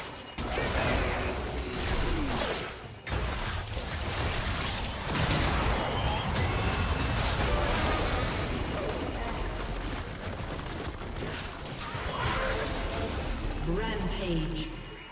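Spell effects crackle and blast in a rapid game fight.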